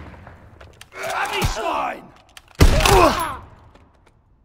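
Shotgun blasts ring out loudly, with echo.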